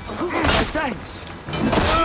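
Swords clash.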